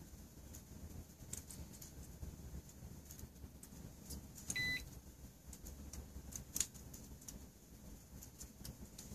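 Candle flames crackle and sputter faintly.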